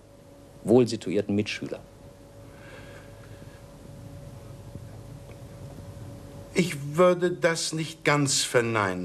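A middle-aged man speaks calmly and thoughtfully, close to a microphone, with pauses.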